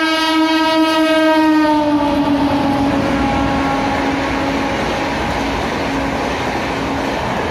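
A passenger train rumbles and clatters past on the tracks.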